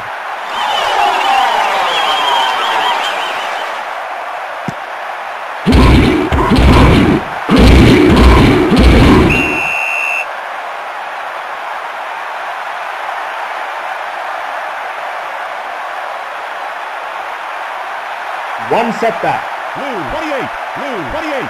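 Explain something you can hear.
A crowd roars steadily in a large stadium.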